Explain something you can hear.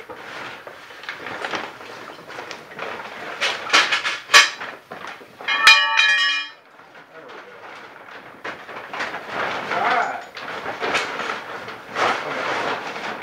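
Foil and plastic sheeting crinkle and rustle loudly as they are handled.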